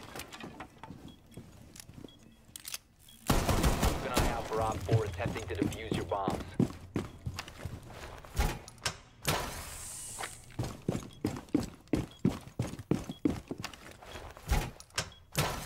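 Footsteps thud quickly across a hard floor.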